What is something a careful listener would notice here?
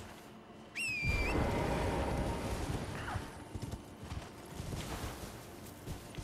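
Hooves gallop steadily over soft ground.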